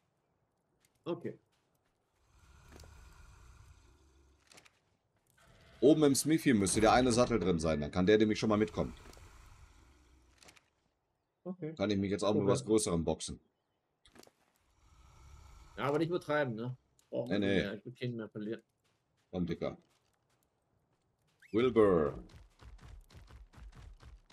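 A young man talks casually and close to a microphone, with pauses.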